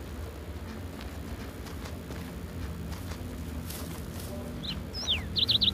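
A spider's legs patter softly over grass.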